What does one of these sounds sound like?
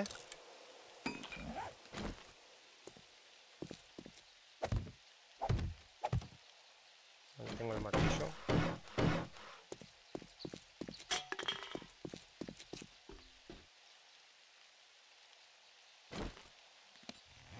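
A hammer knocks on wood in short sharp blows.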